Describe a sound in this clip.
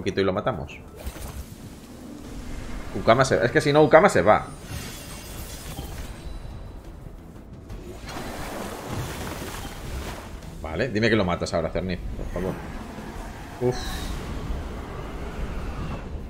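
Game sound effects whoosh and crackle during attacks.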